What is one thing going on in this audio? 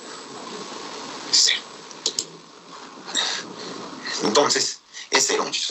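A man explains calmly, close to a microphone.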